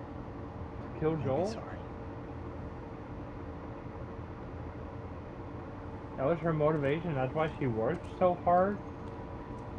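A young man answers calmly nearby.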